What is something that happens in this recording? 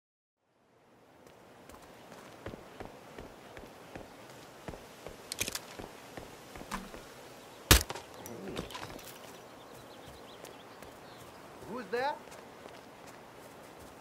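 Footsteps walk steadily over pavement and grass.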